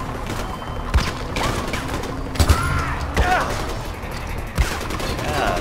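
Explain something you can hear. A rifle fires a few single shots.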